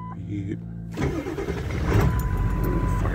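A diesel truck engine cranks and starts.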